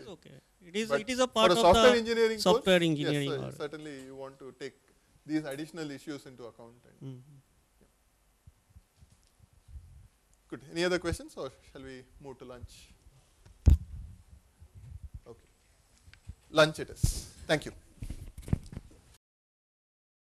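A man speaks calmly and close into a clip-on microphone.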